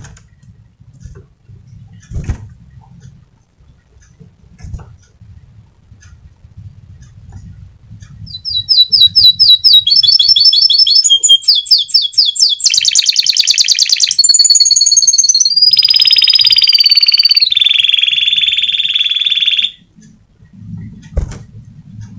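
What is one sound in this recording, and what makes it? A small bird's wings flutter against a cage.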